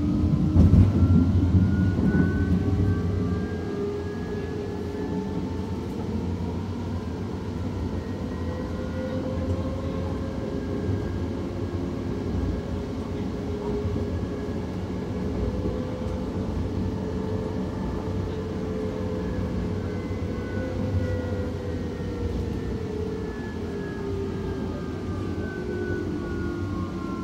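A train's motors whine, rising and falling in pitch.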